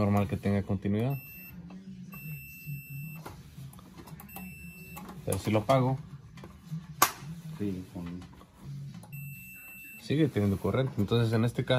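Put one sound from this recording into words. Meter probes tap and click against metal terminals.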